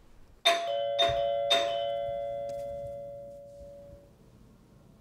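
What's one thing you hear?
A doorbell chimes three times and rings out slowly.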